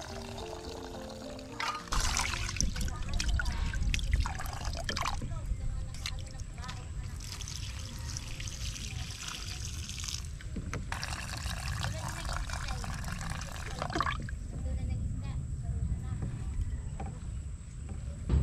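A hand swishes rice around in water.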